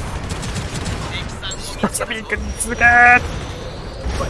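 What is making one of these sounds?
Rapid gunfire rattles and ricochets.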